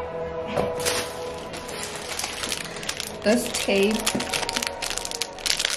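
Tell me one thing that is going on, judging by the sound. Plastic wrapping crinkles in hands.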